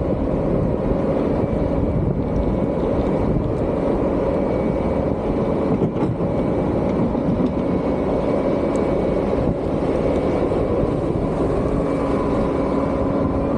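A vehicle engine rumbles steadily close by.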